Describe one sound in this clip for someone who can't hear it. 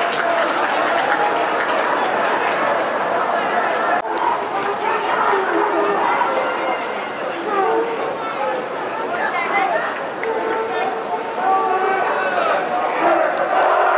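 A large crowd of young men and women chants and shouts in an open stadium.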